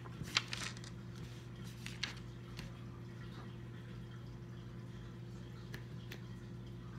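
Plastic toy pieces click and tap against each other.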